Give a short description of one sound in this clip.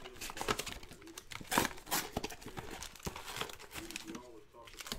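Cardboard packaging rips and tears open.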